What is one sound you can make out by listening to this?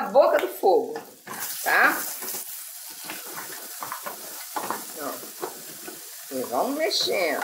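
A wooden spoon stirs and scrapes corn in a metal pot.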